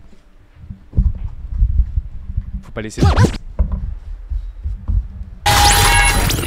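A cloth rubs and knocks against a microphone.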